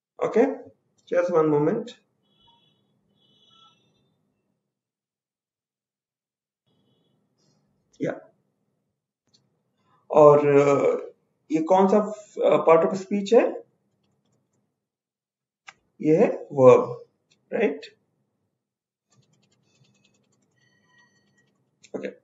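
A man speaks calmly and in short phrases, close to a microphone, as if over an online call.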